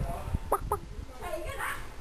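A hen clucks nearby.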